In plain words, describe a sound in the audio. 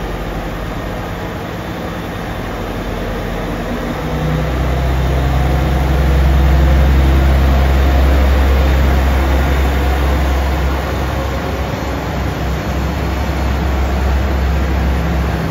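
A train rumbles slowly past with a low, steady engine hum.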